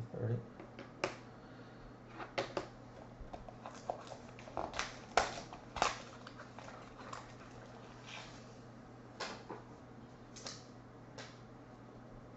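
Plastic wrapping crinkles and rustles as cards are unwrapped.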